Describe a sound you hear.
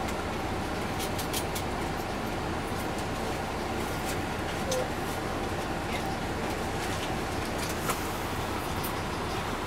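Loose parts of a bus rattle and click as it rolls.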